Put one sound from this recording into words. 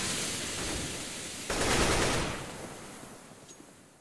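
A rifle fires a short burst.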